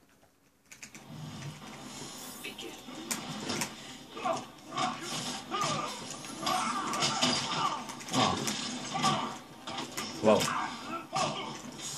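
Blows land with sharp thuds and cracks through a television speaker.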